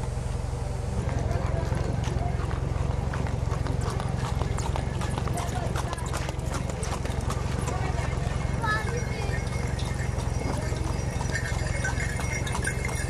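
A horse's hooves clop on a road.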